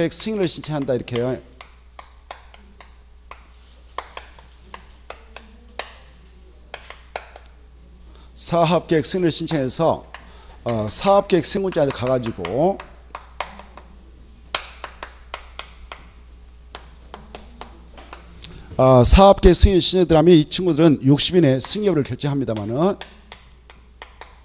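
Chalk taps and scratches on a board.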